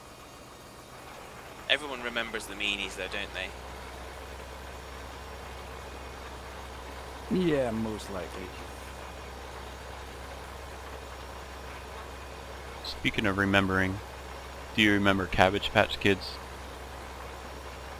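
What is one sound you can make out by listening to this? A tractor engine hums steadily at low pitch.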